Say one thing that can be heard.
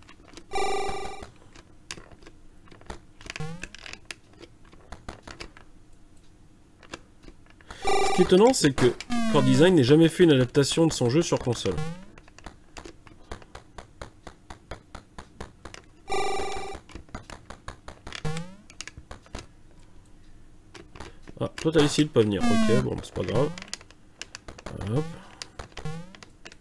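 Retro video game sound effects beep and chirp.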